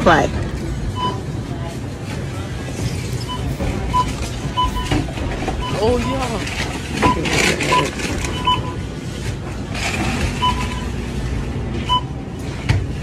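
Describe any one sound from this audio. A checkout scanner beeps again and again.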